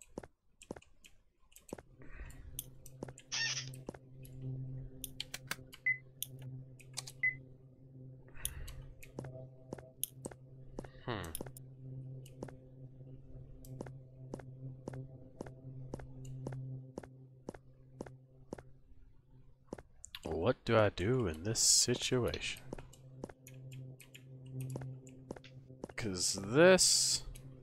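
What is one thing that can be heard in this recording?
Soft footsteps tap in a quick, even rhythm.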